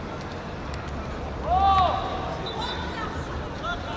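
A crowd of spectators murmurs and shouts outdoors.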